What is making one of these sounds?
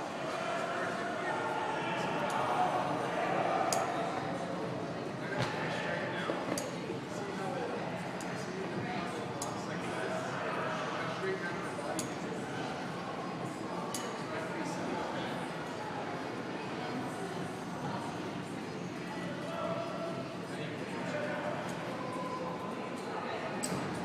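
A climber's hands and shoes knock softly against holds on a climbing wall, in a large echoing hall.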